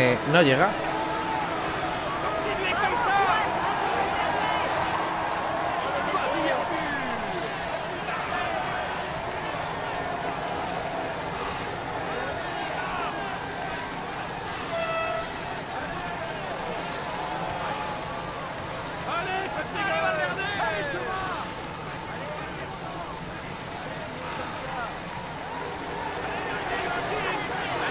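A roadside crowd cheers and shouts steadily.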